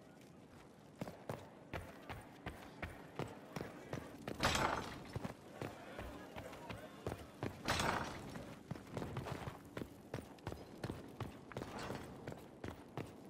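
Footsteps tap quickly on a stone floor.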